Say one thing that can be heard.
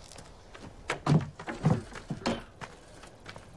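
A wooden door rattles and creaks open.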